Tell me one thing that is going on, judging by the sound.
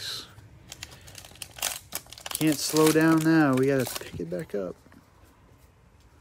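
A plastic wrapper tears open.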